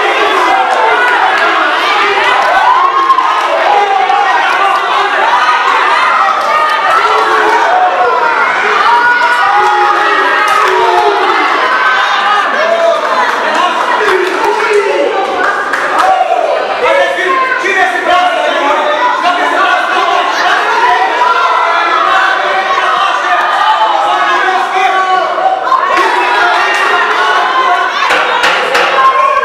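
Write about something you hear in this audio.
A crowd of spectators chatters and cheers loudly in an echoing hall.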